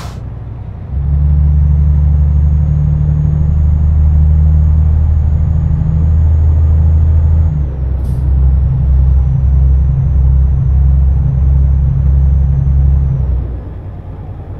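A heavy truck engine drones loudly, then rises and falls in quick pulses before dropping back.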